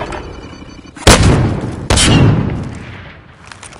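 Gunshots ring out.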